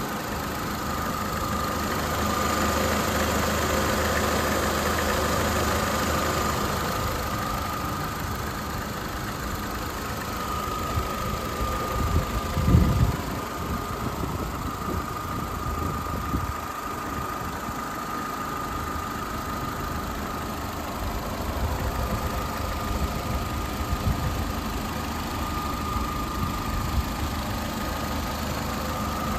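A car engine idles with a steady hum and a faint whine.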